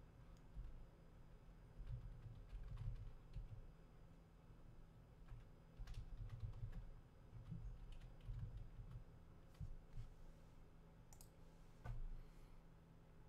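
A man types on a keyboard with soft taps.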